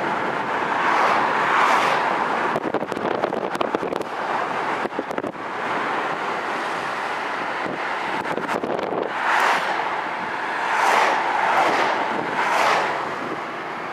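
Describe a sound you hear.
A car passes close by with a whoosh.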